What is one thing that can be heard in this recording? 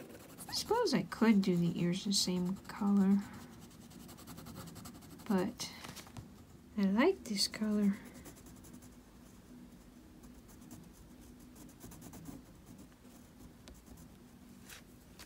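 A crayon scratches softly across paper.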